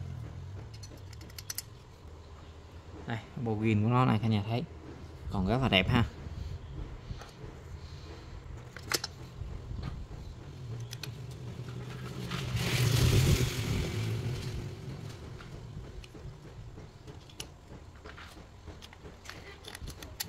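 Plastic parts click and knock as hands handle a chainsaw.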